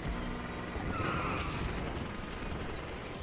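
A car crashes and metal smashes.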